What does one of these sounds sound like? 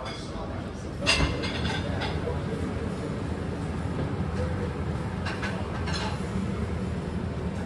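A bamboo steamer lid knocks against its basket.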